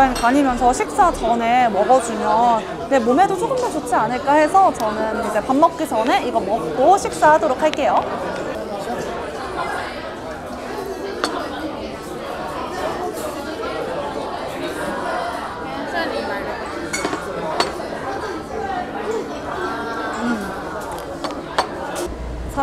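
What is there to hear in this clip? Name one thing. People chatter softly in the background.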